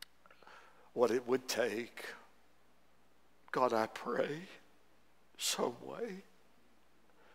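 An elderly man preaches through a microphone in short, emphatic phrases, with pauses between them.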